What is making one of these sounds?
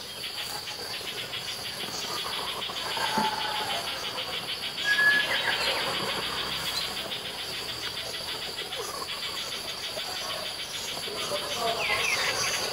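Birds chirp and call in short bursts outdoors.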